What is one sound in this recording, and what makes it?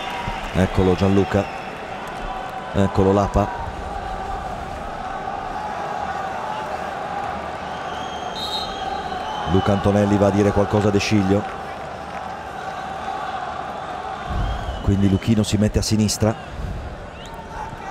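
A large stadium crowd roars and chants steadily, heard outdoors.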